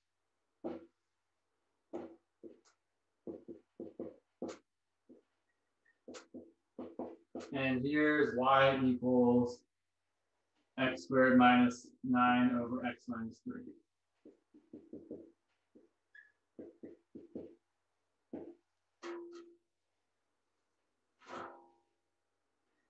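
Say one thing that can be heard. A marker squeaks and taps on a whiteboard in short strokes.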